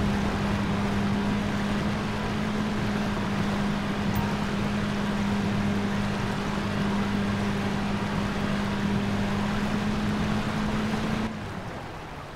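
Water rushes and splashes around a boat's hull.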